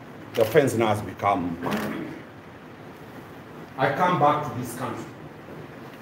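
A man speaks close by in short, firm phrases, in a room with a slight echo.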